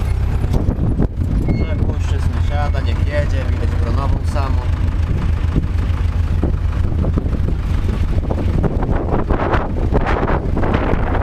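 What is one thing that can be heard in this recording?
A tractor cab rattles and clatters over rough ground.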